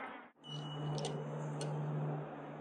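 A finger presses a lift button with a click.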